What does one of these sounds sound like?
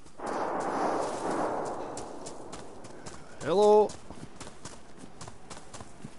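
Footsteps crunch steadily on dirt and grass.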